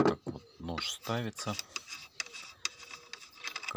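A metal nut clicks and scrapes as a hand turns it on a shaft.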